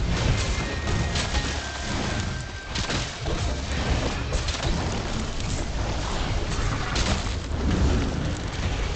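A heavy weapon strikes a large beast with loud, crunching blows.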